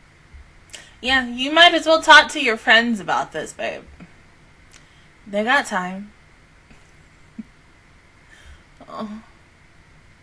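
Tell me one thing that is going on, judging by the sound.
A young woman speaks close to a microphone, in short bursts with long pauses.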